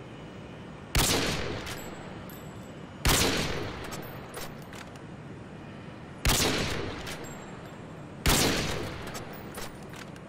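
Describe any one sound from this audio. A scoped sniper rifle fires single shots, each with an echoing report.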